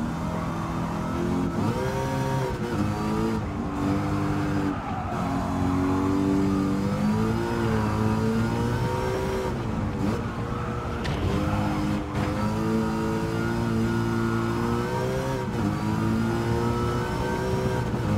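A car engine roars loudly, rising and falling in pitch as gears shift.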